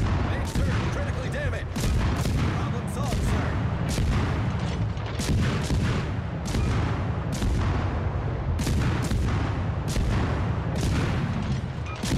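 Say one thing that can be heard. Shells explode with loud blasts.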